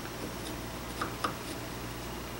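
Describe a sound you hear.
A chisel scrapes and taps against wood.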